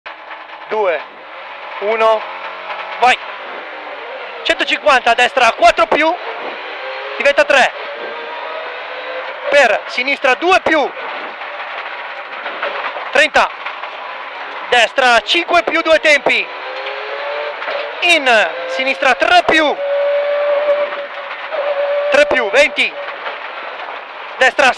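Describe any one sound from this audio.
A rally car engine roars and revs hard, rising and falling in pitch with each gear change.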